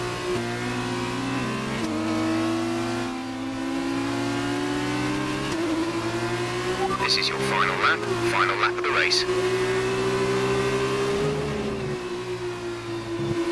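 A racing car engine whines at high revs, shifting gears up and down.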